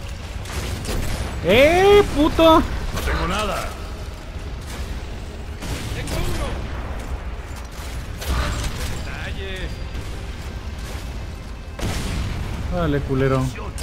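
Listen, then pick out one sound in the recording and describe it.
A rifle fires several shots.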